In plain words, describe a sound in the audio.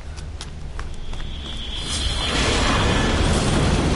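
An armoured vehicle's engine rumbles loudly as it rolls closer.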